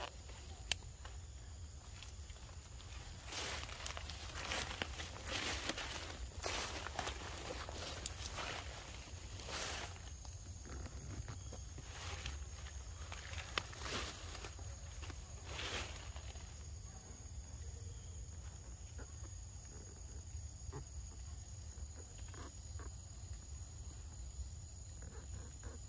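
A monkey bites and chews juicy fruit.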